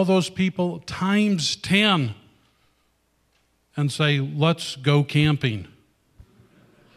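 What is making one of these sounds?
A middle-aged man speaks with animation into a microphone, loud and close.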